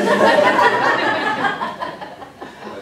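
An elderly woman laughs loudly nearby.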